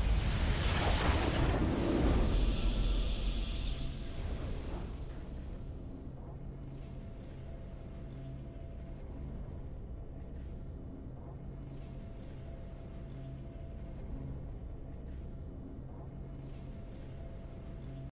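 A game's victory fanfare plays and fades into soft music.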